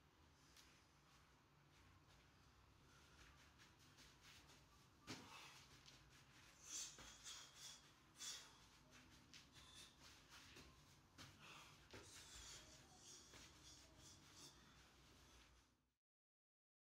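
A woman's feet thud and shuffle on artificial grass as she jumps and hops.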